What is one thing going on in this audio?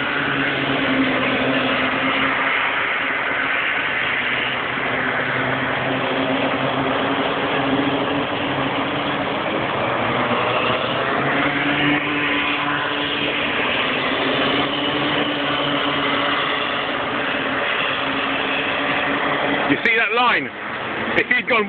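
Go-kart engines buzz and whine loudly as karts race past.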